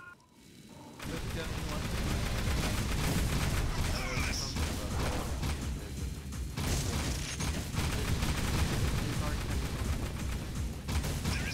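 Guns fire in rapid, steady bursts.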